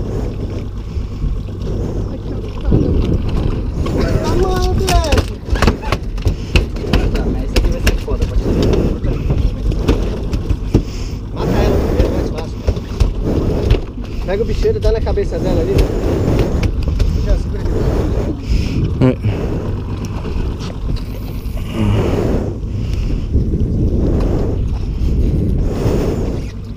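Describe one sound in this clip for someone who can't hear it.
Wind blows steadily and rumbles over open water.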